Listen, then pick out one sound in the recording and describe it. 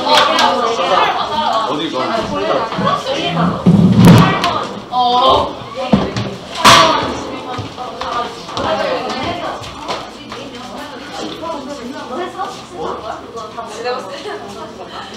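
Paper sheets rustle in hands.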